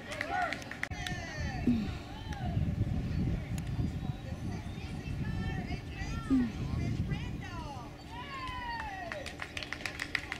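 A crowd of spectators cheers and shouts encouragement nearby.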